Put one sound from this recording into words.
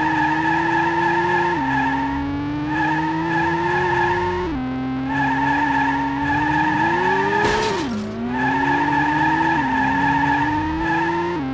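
A racing car engine revs high and drops at each gear change.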